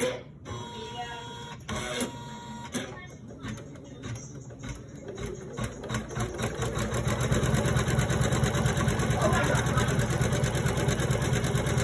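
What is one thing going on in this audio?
A sewing machine stitches with a fast, steady rattle that grows louder.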